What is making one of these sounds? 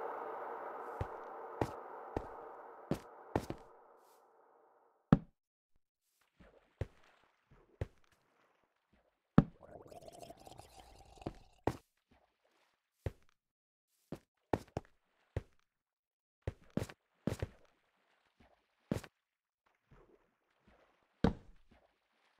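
Footsteps clack on stone in a cave.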